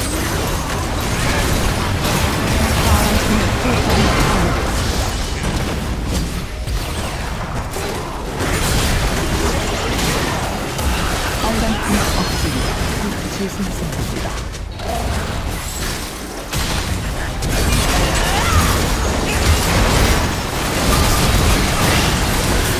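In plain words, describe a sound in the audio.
Game spells blast, crackle and whoosh in a fast battle.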